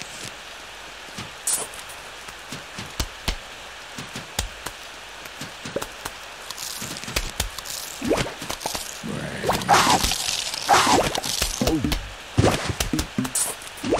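Cartoon peas pop and splat against zombies.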